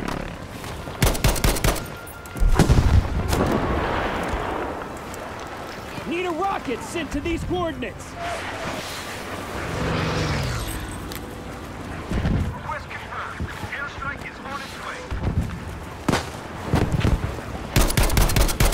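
A rifle fires sharp, loud shots.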